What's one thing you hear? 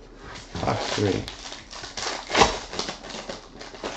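A foil wrapper tears open.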